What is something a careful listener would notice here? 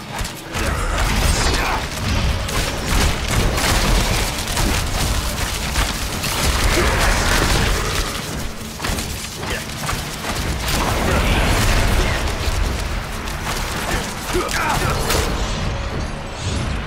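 Spell blasts and weapon strikes crash and whoosh again and again.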